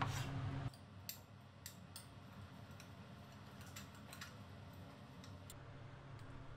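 A spoon clinks against a glass bowl while stirring.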